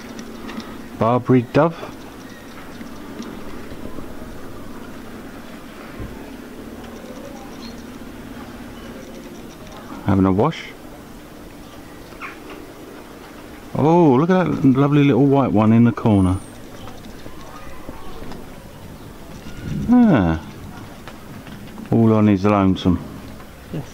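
A dove coos nearby in short repeated calls.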